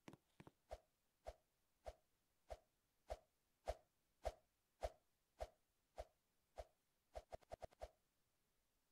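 A game character bounces up and down, landing with regular soft thumps.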